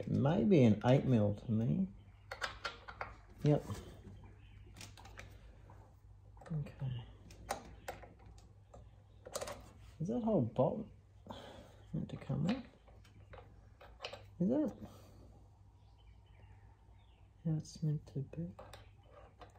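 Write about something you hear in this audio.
A small wrench clicks and taps against metal.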